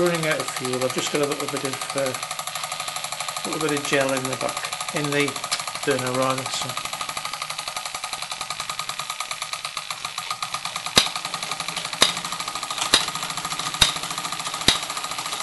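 A toy steam engine chugs and hisses with a fast, steady beat.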